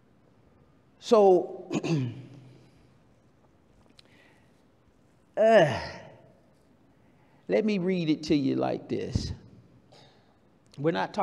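A man preaches forcefully into a microphone in a large echoing hall, with long pauses between phrases.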